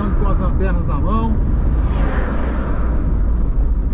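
A large truck rushes past in the opposite direction.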